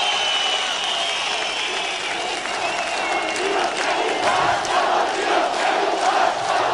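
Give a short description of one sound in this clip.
A large outdoor crowd cheers and chants loudly.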